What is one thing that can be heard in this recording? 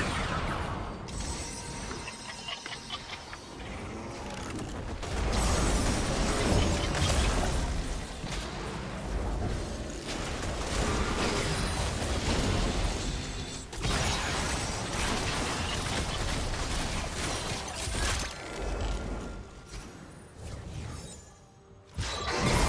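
Magic spells crackle and blast in a busy fight.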